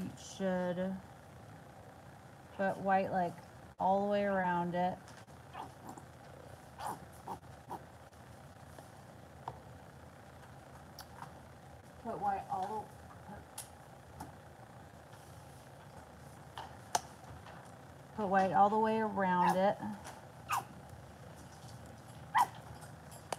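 A plastic paint bottle is squeezed, squirting paint with soft squelches.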